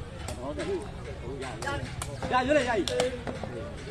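A foot kicks a ball with a sharp thump.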